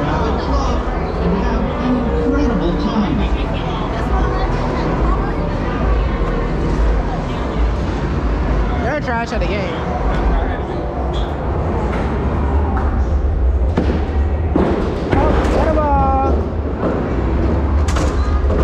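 Arcade machines chime and play electronic music all around, in a large noisy hall.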